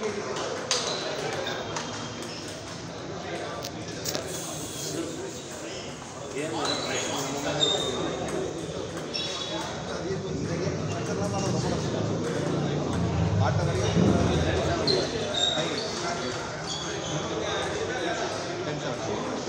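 A table tennis ball clicks back and forth between paddles and bounces on the table.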